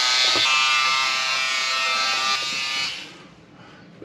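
An electric trimmer buzzes steadily close by, then stops.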